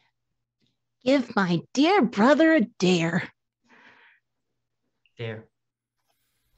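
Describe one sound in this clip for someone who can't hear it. A young woman speaks excitedly over an online call.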